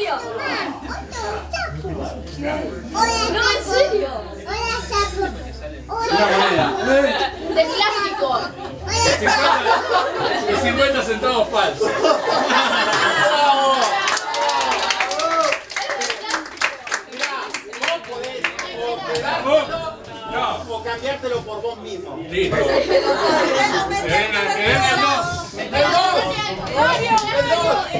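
Several people talk and laugh together in a small room, heard from a short distance.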